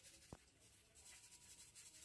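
A hand shakes powder through a metal sieve with a soft, gritty hiss.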